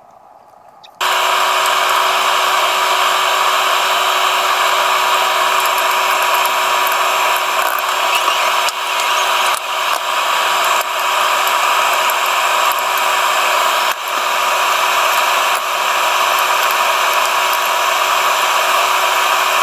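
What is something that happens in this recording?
Oil sizzles and bubbles loudly in a pot.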